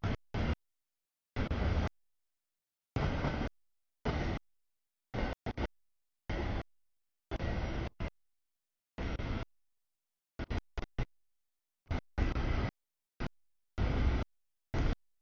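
A freight train rumbles and clatters past close by, cutting in and out.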